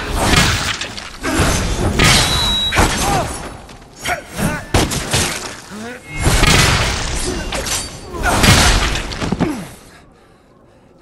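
Swords slash and clash in a fast fight.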